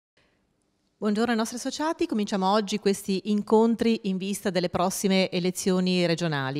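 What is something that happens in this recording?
A woman speaks with animation into a microphone, close by.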